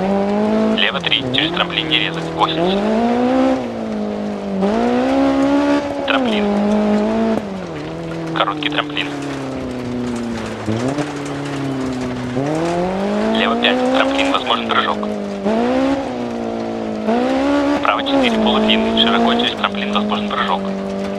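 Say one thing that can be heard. Gravel crackles and sprays under spinning tyres.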